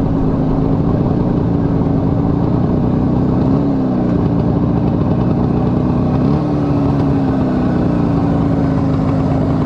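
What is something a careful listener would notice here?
A motorcycle engine hums steadily up close, with its pitch shifting as gears change.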